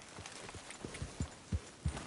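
A horse's hooves thud on grassy ground.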